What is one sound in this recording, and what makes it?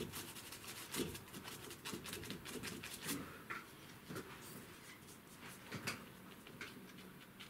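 A stiff brush scrubs and dabs against paper with soft, scratchy strokes.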